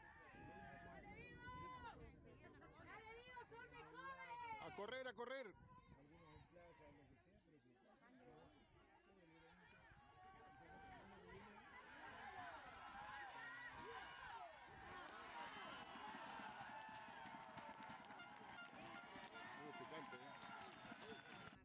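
A crowd of spectators shouts and cheers outdoors, growing louder toward the end.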